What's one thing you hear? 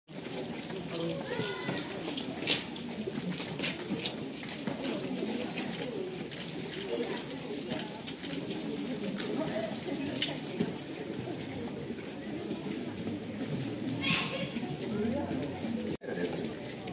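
Footsteps shuffle on wet pavement.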